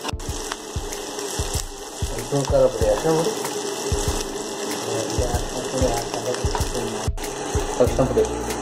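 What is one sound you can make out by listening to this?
Onions sizzle and crackle in hot oil in a pan.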